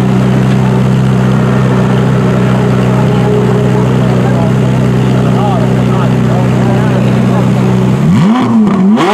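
A sports car engine idles with a deep, steady rumble.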